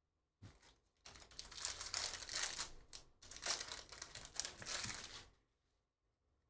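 A foil card pack crinkles and tears as hands rip it open.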